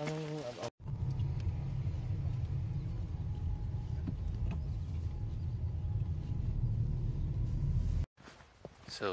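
A car engine rumbles low and steady from inside a moving car.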